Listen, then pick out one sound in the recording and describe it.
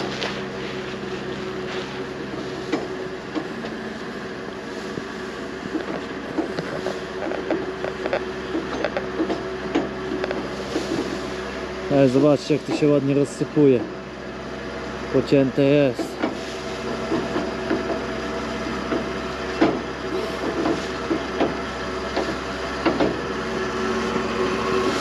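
A tractor engine drones steadily nearby.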